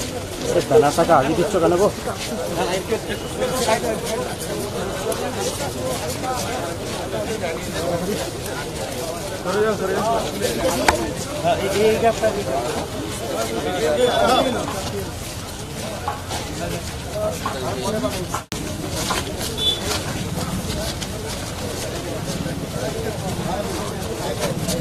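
A crowd of men and women murmurs and talks outdoors.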